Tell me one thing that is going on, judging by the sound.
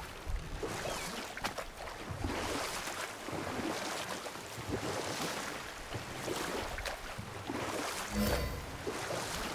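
Oars splash rhythmically in the water.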